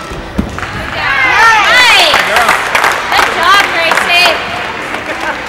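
Young women cheer and whoop loudly in a large echoing hall.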